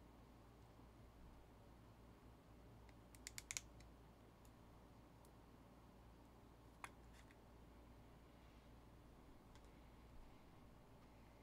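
Trading cards click and rustle as hands shuffle them.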